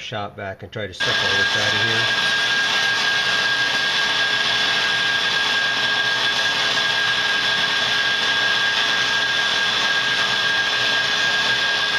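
A rotary tool whines at high speed as a sanding drum grinds metal.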